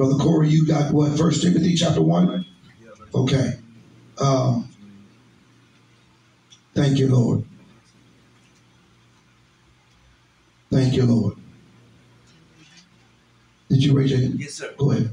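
An elderly man speaks slowly and emphatically into a close microphone, with long pauses.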